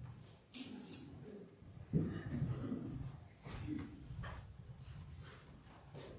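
Footsteps move across a floor close by.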